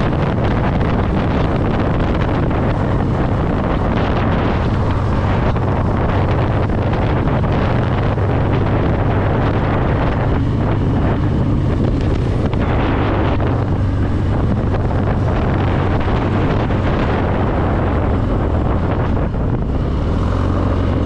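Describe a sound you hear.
Wind rushes loudly past a riding motorcyclist.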